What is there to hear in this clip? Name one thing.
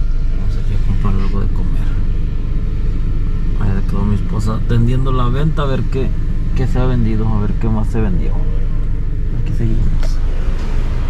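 A car engine idles with a low steady hum.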